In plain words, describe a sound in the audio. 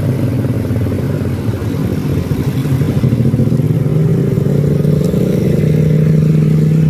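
A heavy dump truck engine rumbles as the truck drives toward the listener, growing louder.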